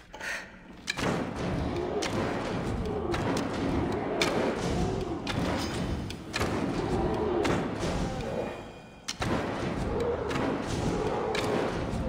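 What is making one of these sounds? A bowstring snaps as arrows are loosed, one after another.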